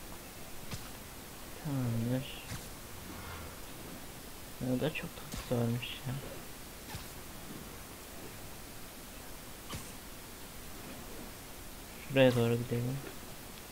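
A web line zips and snaps.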